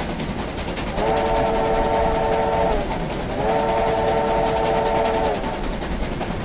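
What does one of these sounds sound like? A steam locomotive whistle blows two long blasts.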